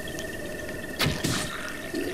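A bowstring twangs as an arrow is loosed.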